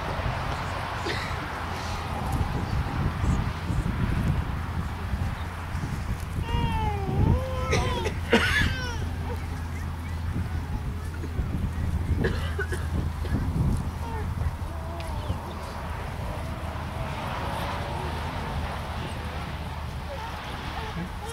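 A man speaks calmly to a gathering outdoors.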